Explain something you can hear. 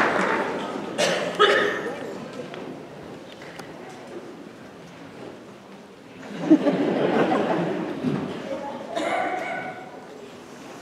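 A young man speaks to a group in a large echoing hall.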